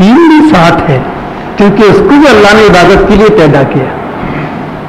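An elderly man chants a recitation in a drawn-out, melodic voice through a microphone.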